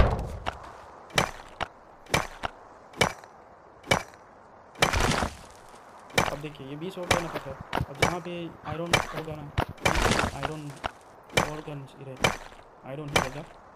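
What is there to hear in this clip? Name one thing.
A pickaxe strikes stone with sharp, repeated knocks.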